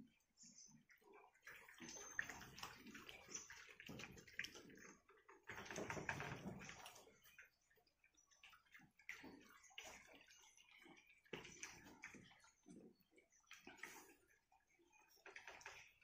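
Many puppies whine and yelp close by.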